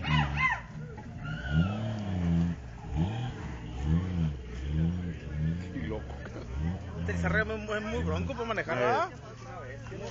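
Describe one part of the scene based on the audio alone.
Off-road truck engines rev hard and roar in repeated bursts.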